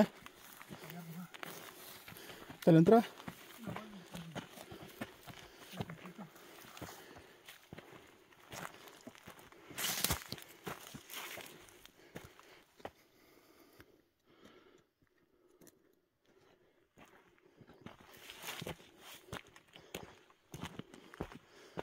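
Footsteps crunch on dry, stony soil.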